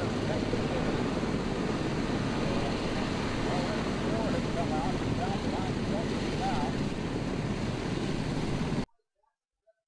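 A helicopter's rotor thrums steadily overhead.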